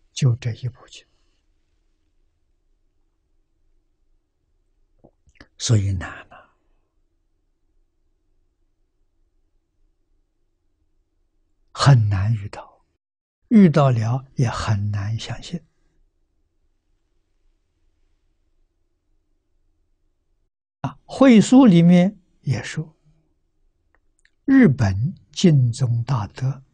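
An elderly man speaks calmly with long pauses, close to a microphone.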